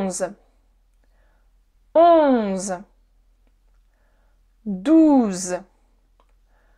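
A young woman speaks single words clearly and slowly into a close microphone, with pauses between them.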